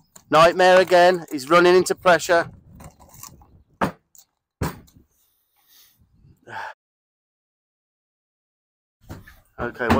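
A horse's hooves thud on a wooden trailer ramp.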